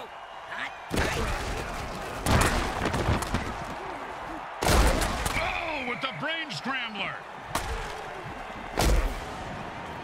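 Armoured players crash into each other with heavy thuds.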